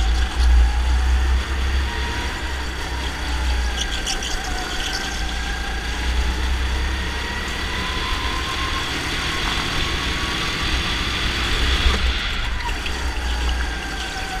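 A go-kart engine buzzes loudly up close, its pitch rising and falling.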